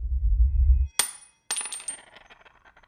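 A small metal object clinks on a hard floor.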